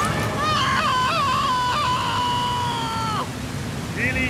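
A man screams loudly in fright.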